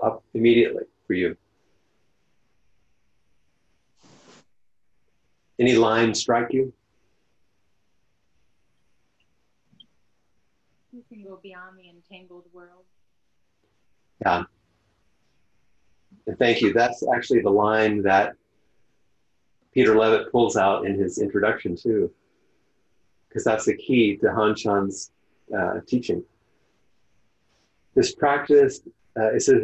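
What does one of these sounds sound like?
An older man speaks calmly and thoughtfully through an online call, with long pauses.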